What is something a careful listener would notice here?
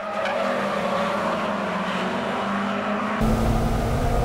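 Car engines roar past outdoors.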